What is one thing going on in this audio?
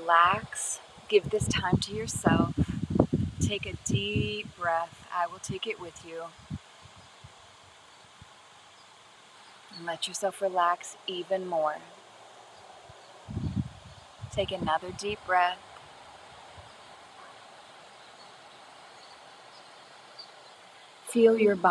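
A woman speaks calmly and closely into a microphone, with pauses.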